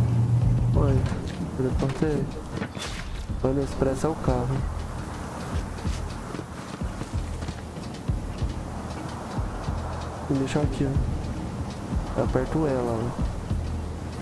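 A man talks calmly through a microphone.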